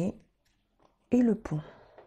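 A deck of cards is shuffled by hand.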